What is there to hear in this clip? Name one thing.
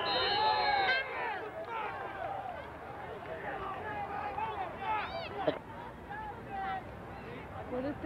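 A crowd of spectators cheers and shouts loudly outdoors.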